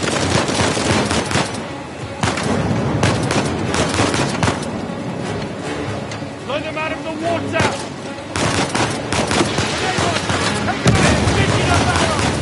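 Pistol shots crack in rapid bursts.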